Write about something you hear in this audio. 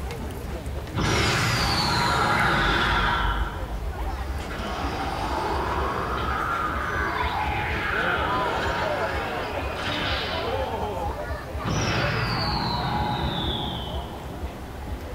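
Loud sound effects with falling whooshes play as a giant statue's parts move.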